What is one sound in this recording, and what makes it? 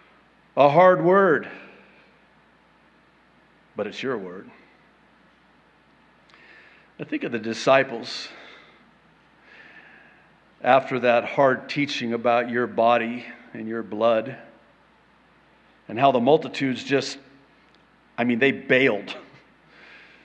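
A middle-aged man speaks with animation into a microphone, in a reverberant hall.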